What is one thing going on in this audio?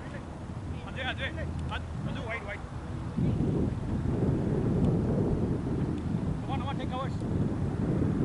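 Men call out to each other across a field outdoors.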